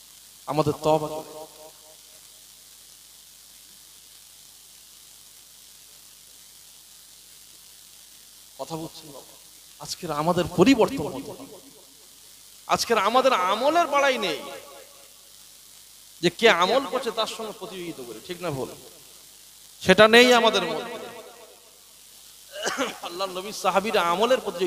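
A man speaks with passion into a microphone, heard through loudspeakers, in bursts with pauses.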